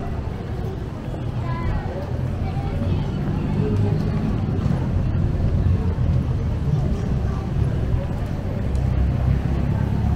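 People chatter faintly in the distance.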